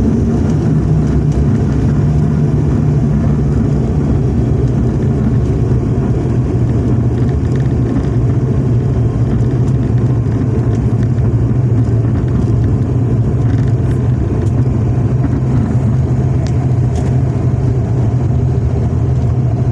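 Wheels rumble over a runway.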